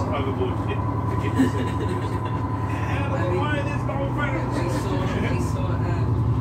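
A ship's engine hums with a steady low rumble.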